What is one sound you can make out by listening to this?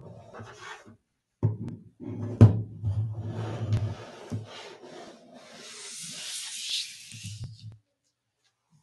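A headset cable rustles and knocks against a table as it is handled.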